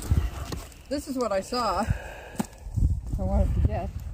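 Wooden logs knock together.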